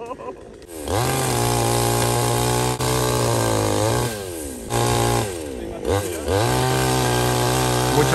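A chainsaw revs loudly, rising and dropping in bursts as it cuts through branches.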